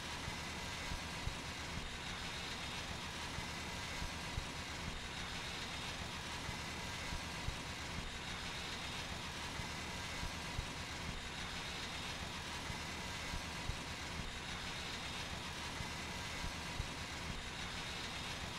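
An engine runs with a steady, loud drone.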